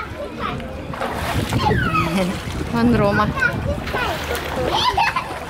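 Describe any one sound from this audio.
Water splashes in a pool.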